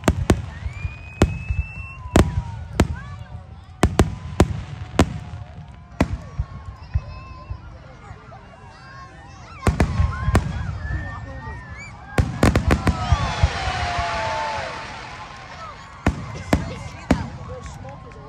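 Fireworks burst with sharp loud bangs.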